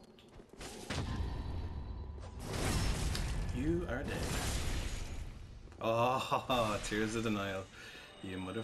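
Swords clash and strike with metallic rings.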